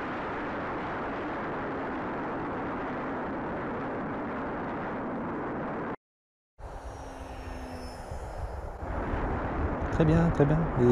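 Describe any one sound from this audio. A drone's motors whir as it flies.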